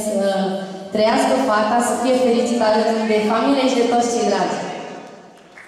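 A young woman sings into a microphone through loudspeakers.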